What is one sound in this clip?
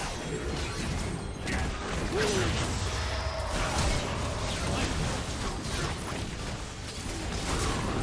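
Magic spells whoosh and crackle in a fast, busy fight.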